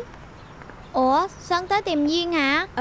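A woman speaks with animation nearby.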